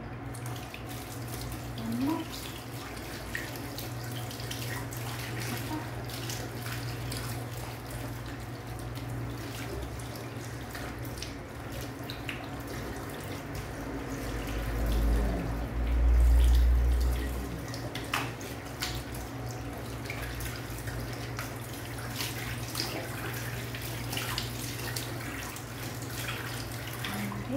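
Tap water runs steadily into a sink.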